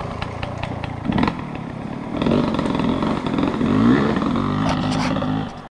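A dirt bike engine revs and drones close by.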